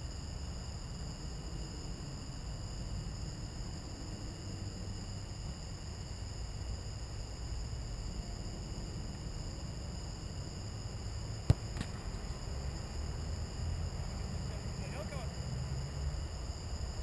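A football is kicked far off.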